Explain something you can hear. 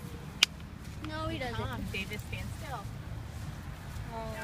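Young children call out excitedly nearby.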